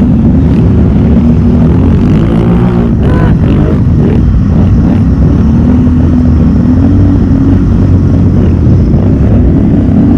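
Mud splashes and squelches under tyres.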